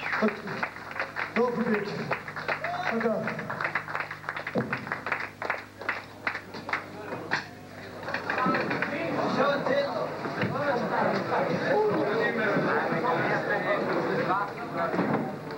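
A group of performers plays music.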